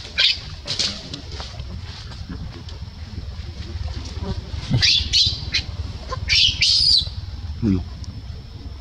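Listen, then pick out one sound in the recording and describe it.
A baby macaque squeals and cries in high, shrill bursts.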